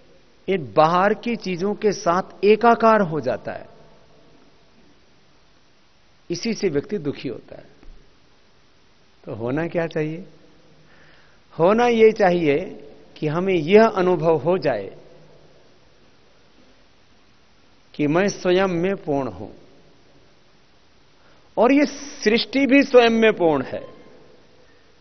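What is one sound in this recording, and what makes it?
A man speaks calmly in bursts into a close microphone, with pauses between phrases.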